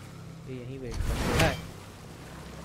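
An axe swings through the air with a whoosh.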